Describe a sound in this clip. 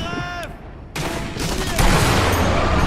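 A rifle fires a single loud shot that echoes.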